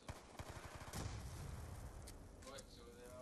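An explosion booms loudly and rumbles.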